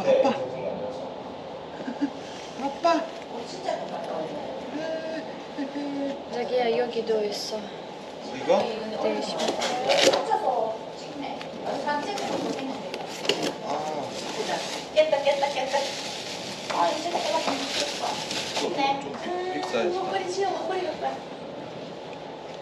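Clothes rustle as a baby is dressed.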